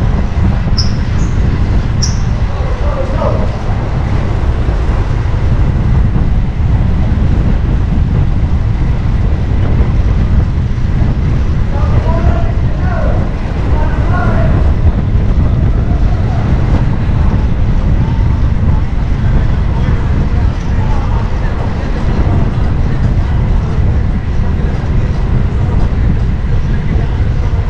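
Wind rushes loudly past as a bicycle rides along.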